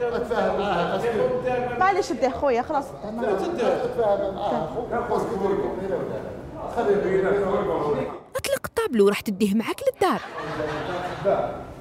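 Several men talk loudly and excitedly over each other nearby.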